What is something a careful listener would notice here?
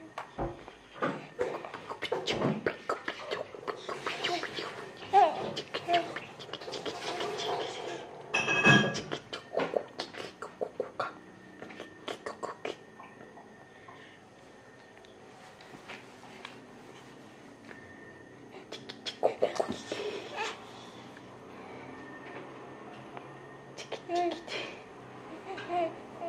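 A baby girl babbles and coos close by.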